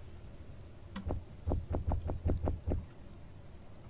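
Soft thumping clicks sound in quick succession as items are moved in a game inventory.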